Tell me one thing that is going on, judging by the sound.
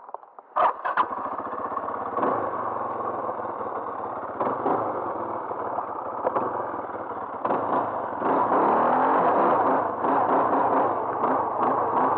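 A quad bike engine runs loudly and revs as it rides over rough ground.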